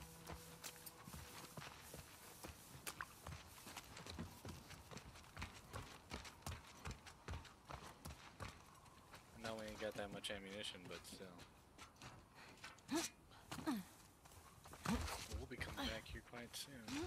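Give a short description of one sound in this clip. Footsteps crunch through grass and tap on a hard walkway.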